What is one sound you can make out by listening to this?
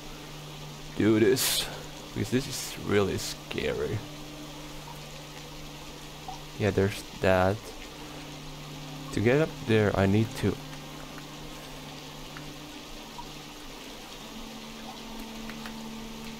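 Water pours down steadily in a soft, constant rush.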